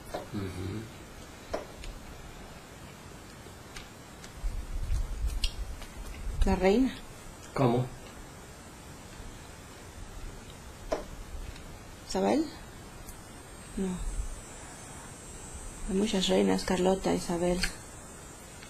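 A woman speaks softly and haltingly, close by.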